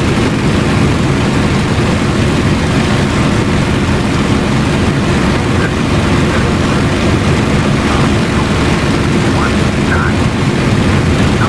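A propeller engine roars steadily.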